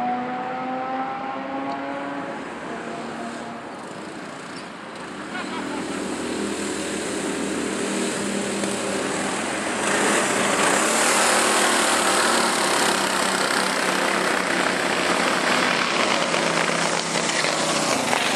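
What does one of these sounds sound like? Go-kart engines whine and buzz as karts race past, rising to a loud roar up close.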